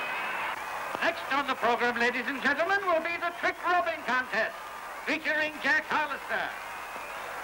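A man shouts loudly through a megaphone.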